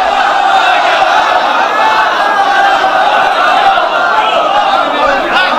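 A young man recites loudly and with feeling through a microphone.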